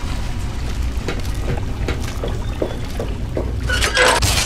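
Footsteps clank steadily on a metal floor.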